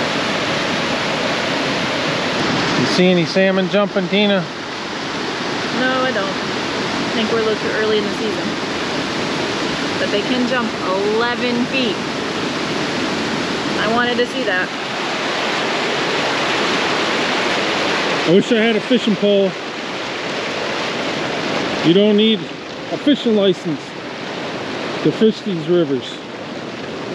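A fast river rushes and splashes over rocks.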